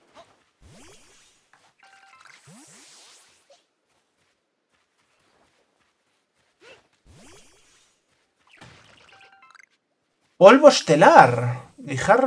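A small ball whooshes through the air as it is thrown.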